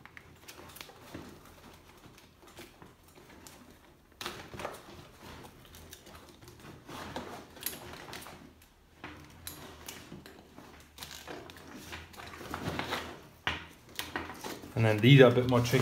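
Fabric rubs and rustles right up close.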